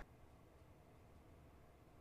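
Liquid trickles onto a hard surface.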